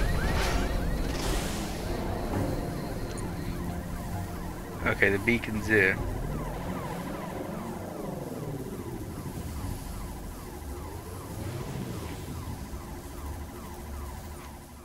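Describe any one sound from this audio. A hovering vehicle's engine hums and whines steadily as it speeds along.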